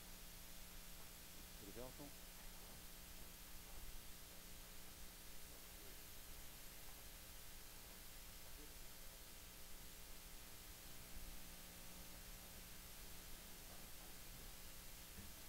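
People murmur quietly in a large room.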